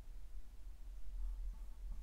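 A paintbrush dabs softly on canvas.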